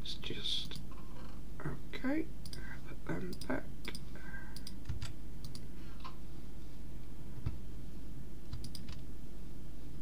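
Soft mouse clicks sound now and then.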